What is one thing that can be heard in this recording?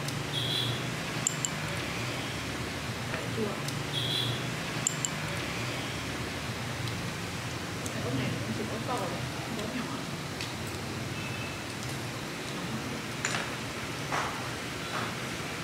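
A metal spoon clinks and scrapes against a ceramic bowl.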